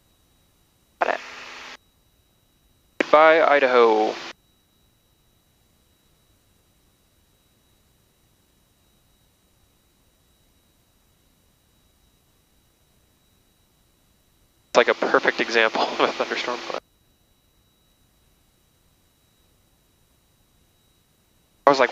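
A man speaks calmly over an aircraft intercom.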